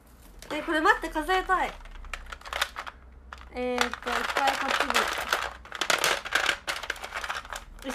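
A plastic container rustles and crinkles in hands.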